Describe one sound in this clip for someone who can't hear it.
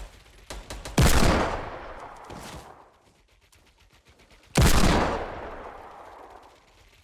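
A shotgun blasts loudly, with a long echoing tail.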